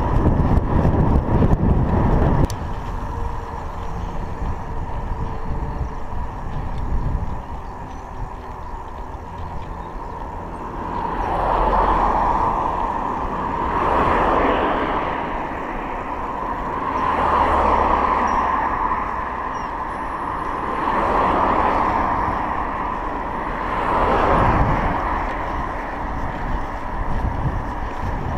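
Wind rumbles and buffets steadily, outdoors.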